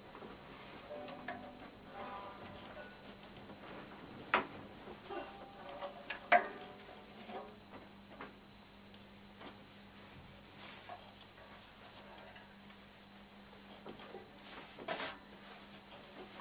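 A banjo knocks and thumps as it is handled.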